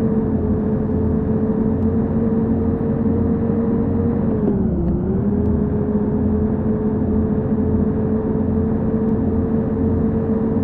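A bus engine hums steadily, dipping briefly in pitch.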